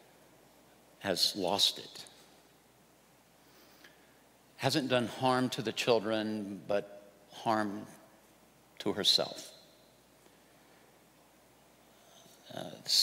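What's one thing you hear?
A middle-aged man speaks with feeling into a microphone, with long pauses between phrases.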